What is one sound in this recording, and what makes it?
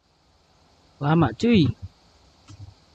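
A young man speaks briefly and close to a microphone.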